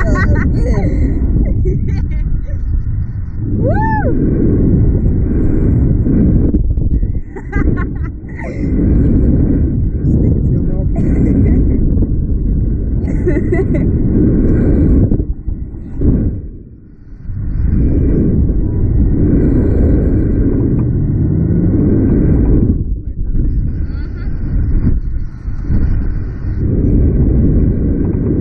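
Strong wind roars past loudly.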